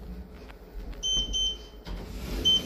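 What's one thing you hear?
A keypad beeps as a finger presses its buttons.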